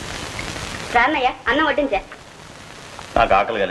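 A woman speaks close by in a clear voice.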